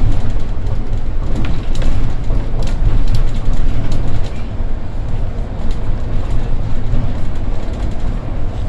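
The bus body rattles and clicks over the road.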